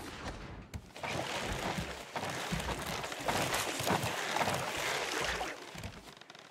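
Water splashes loudly as a shark thrashes at the surface.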